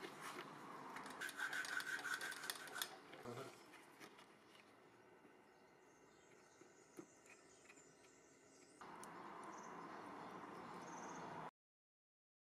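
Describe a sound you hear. A plastic stick stirs and scrapes epoxy glue on cardboard.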